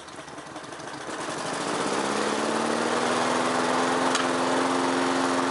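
A lawnmower engine starts up and runs with a steady drone.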